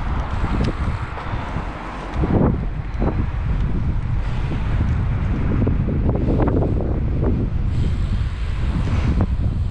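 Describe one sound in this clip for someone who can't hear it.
Wind buffets loudly against a moving rider.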